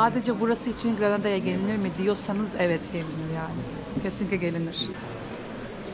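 A young woman talks calmly close to the microphone.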